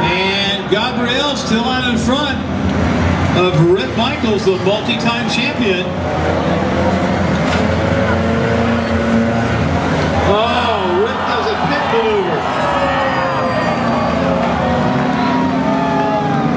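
Race car engines roar steadily as cars speed around a track.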